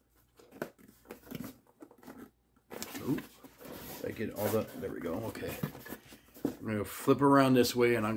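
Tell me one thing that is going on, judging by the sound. A cardboard box rustles and scrapes in a man's hands.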